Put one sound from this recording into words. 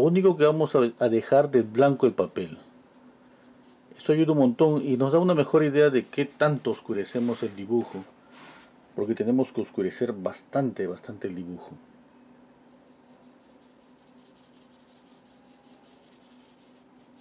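A brush softly strokes across paper.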